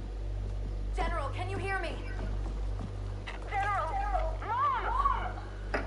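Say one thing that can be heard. A young woman calls out anxiously.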